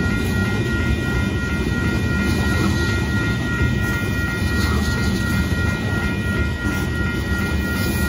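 A railroad crossing bell rings steadily and rapidly.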